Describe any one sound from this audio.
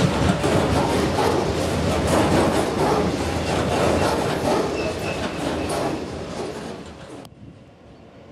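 A freight train rattles past close by, wagons clattering over the rails.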